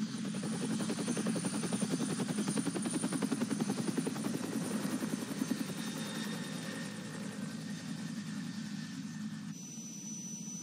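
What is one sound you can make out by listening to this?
A helicopter's rotor chops loudly overhead.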